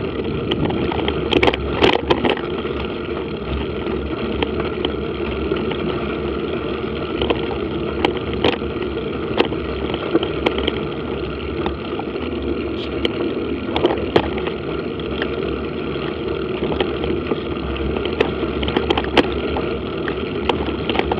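Tyres roll and crunch over a gravel track, with occasional knocks and rattles.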